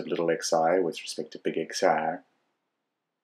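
A man speaks calmly and steadily into a close microphone.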